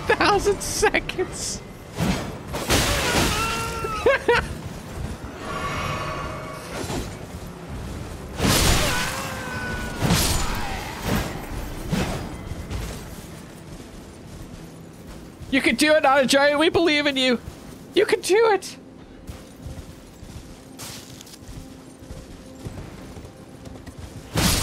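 A horse gallops with heavy hoof beats.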